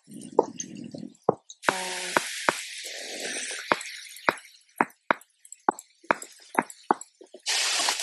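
Blocks are placed with short, soft knocks.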